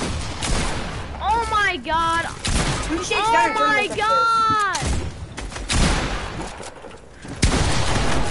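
Gunshots crack and bang in short bursts.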